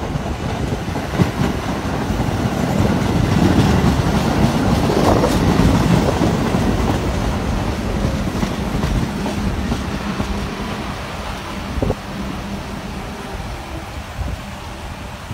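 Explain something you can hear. A train rumbles and rattles along the tracks close by, loudest as it passes and then slowly fading.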